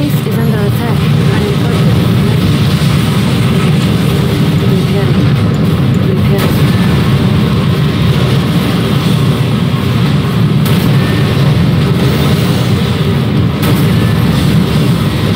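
Airships drone overhead.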